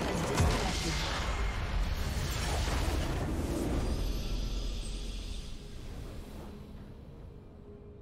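A deep explosion booms and rumbles, then slowly fades.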